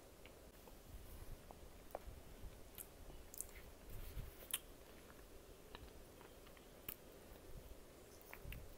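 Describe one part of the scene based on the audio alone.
A young woman chews close to a microphone with soft wet mouth sounds.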